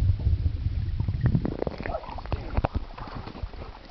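Water splashes and drips as a dog climbs out of a pool.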